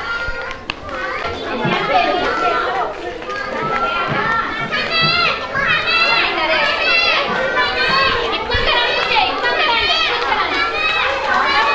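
Children chatter and shout excitedly nearby.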